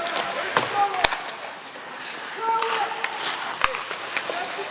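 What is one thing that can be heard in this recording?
Hockey sticks crack sharply against a puck.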